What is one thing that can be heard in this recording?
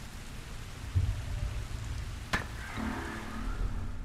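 A thrown bottle smashes on the ground.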